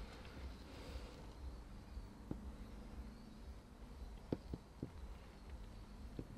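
A small palette knife scrapes softly across wet paint.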